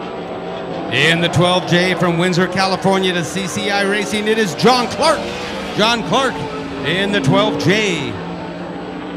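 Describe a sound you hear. A race car engine revs loudly up and down as it passes close by.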